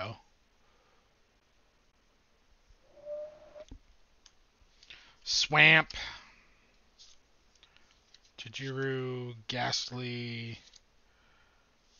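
Playing cards shuffle and slide against each other.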